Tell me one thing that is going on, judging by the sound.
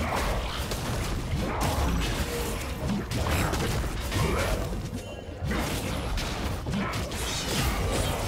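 Magic spells and weapon blows clash in a fast-paced battle.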